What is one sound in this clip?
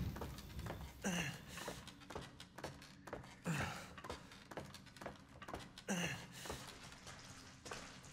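Hands climb a wooden ladder with heavy thumps.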